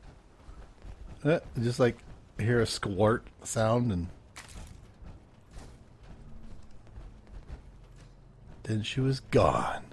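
Footsteps crunch over dry ground.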